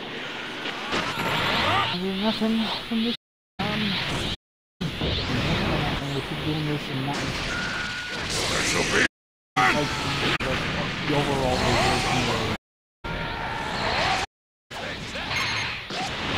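Energy blasts whoosh and crackle in a fast fight.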